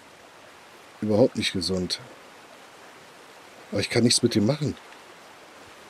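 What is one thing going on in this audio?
A man speaks briefly in a low, calm voice close by.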